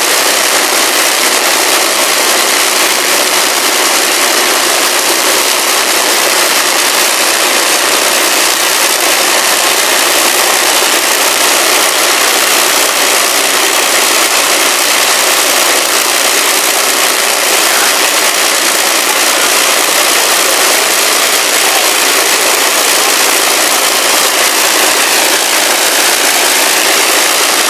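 Several propeller engines roar loudly and steadily close by.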